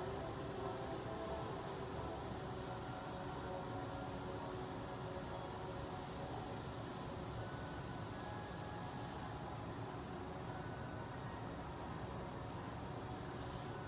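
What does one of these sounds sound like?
Game music plays through a television speaker.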